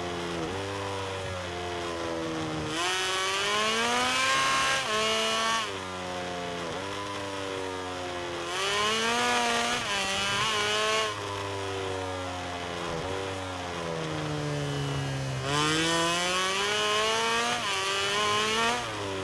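A motorcycle engine revs hard, its pitch rising and falling as it shifts gears.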